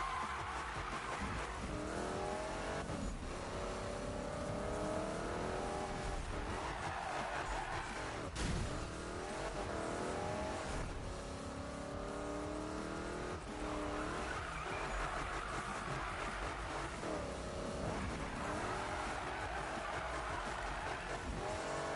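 A race car engine roars and revs as it speeds along.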